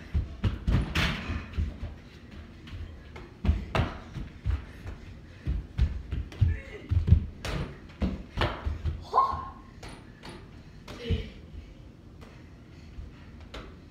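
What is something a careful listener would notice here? A basketball hits a hoop's backboard and rim.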